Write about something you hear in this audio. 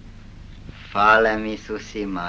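An elderly man speaks loudly.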